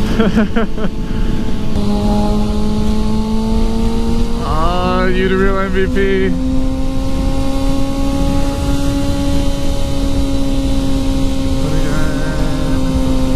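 A sport motorcycle engine hums at a steady highway cruise.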